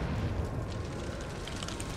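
Flames crackle and hiss nearby.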